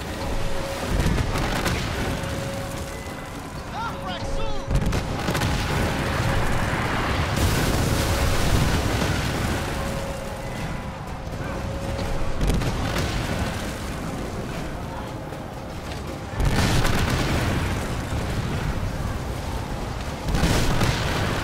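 Ship's cannons fire with deep booms.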